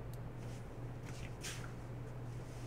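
Trading cards slide and rustle between fingers.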